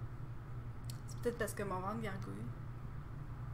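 A young woman speaks briefly into a microphone.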